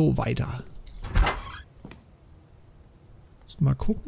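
A wooden door opens.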